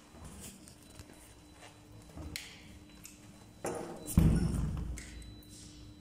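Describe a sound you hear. A door handle rattles and a heavy door opens.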